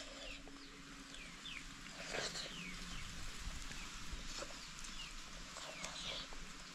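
Fingers squish and mash soft food against a metal plate.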